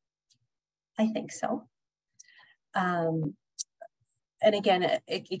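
A woman speaks calmly and warmly through a microphone on an online call.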